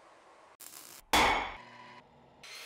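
A hammer strikes metal on an anvil.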